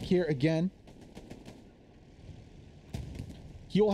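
A tank cannon fires with a heavy boom.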